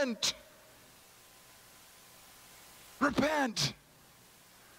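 An elderly man speaks with animation into a microphone.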